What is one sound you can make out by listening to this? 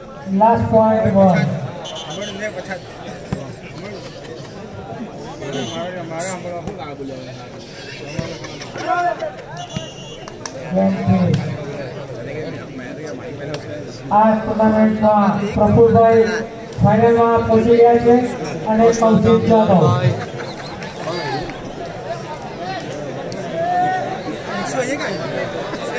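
A crowd of spectators chatters outdoors in the background.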